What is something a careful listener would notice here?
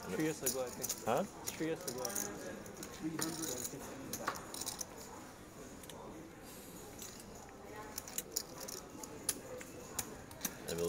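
Poker chips click and clatter together.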